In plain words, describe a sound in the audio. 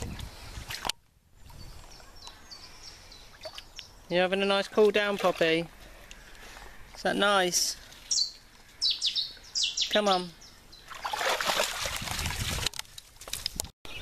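Dogs splash through shallow water.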